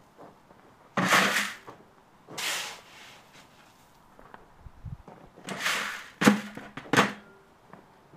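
A shovel scrapes and scoops coal.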